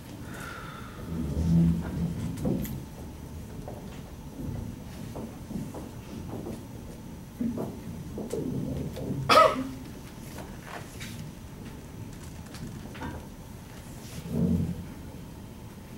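A man speaks calmly, as if lecturing.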